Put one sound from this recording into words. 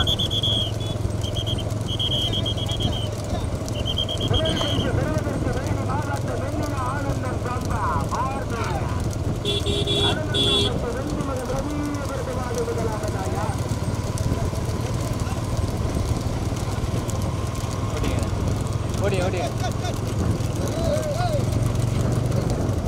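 Cart wheels rumble over asphalt.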